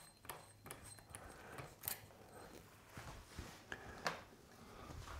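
Small metal parts click and clink close by.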